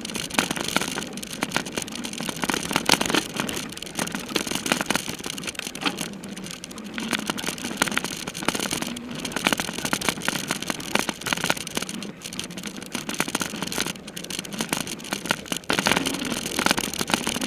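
Bicycle tyres rattle and bump over a rough dirt trail.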